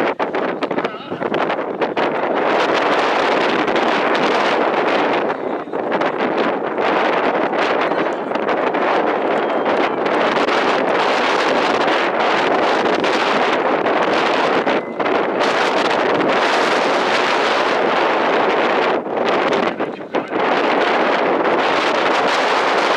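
Wind blows hard across an open field.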